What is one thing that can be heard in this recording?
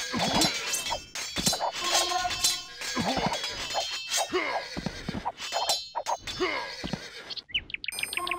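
Swords clash and clang in a fierce battle.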